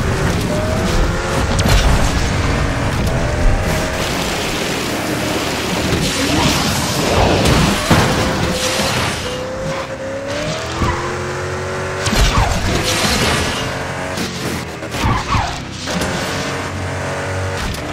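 A sports car engine roars at high speed, shifting up and down in pitch.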